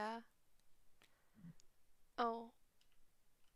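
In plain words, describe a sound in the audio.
A young woman lets out short, high-pitched laughs close to a microphone.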